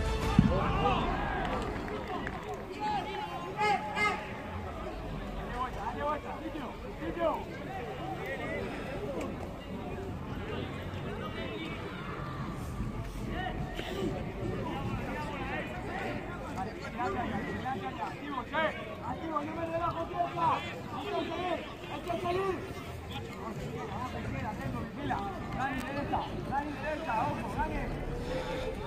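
Football players shout and call to each other across an open outdoor pitch.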